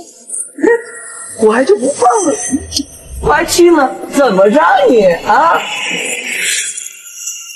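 A young man speaks with animation close by.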